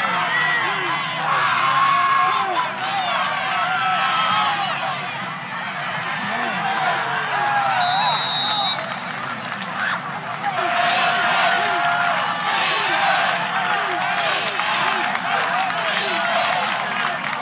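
A crowd of spectators chatters and shouts in the stands.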